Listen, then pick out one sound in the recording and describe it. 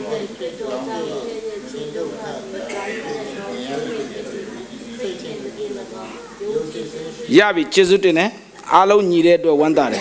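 A man speaks steadily into a microphone in an echoing hall.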